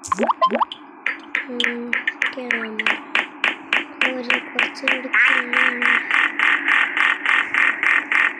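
A game character's footsteps patter quickly and steadily.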